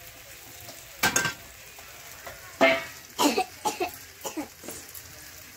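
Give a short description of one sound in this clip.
Pieces of raw meat drop with soft thuds and a splash into a metal pan.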